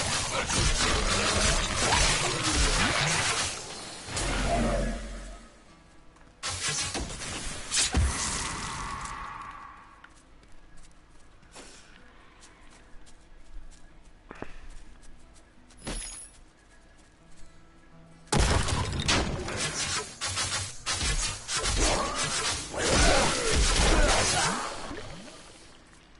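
Weapons clash and strike repeatedly in a noisy fight.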